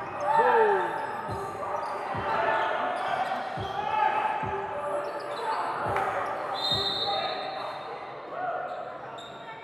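Spectators shout and cheer.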